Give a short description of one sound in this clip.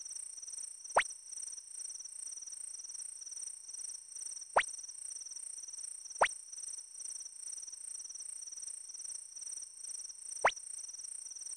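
A short electronic blip sounds a few times.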